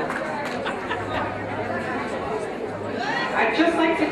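A middle-aged woman speaks into a microphone over a loudspeaker.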